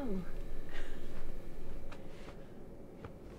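A young woman speaks softly and playfully nearby.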